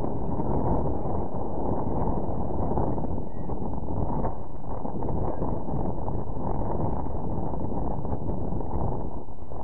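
Wind blows steadily across an open outdoor space, rumbling against the microphone.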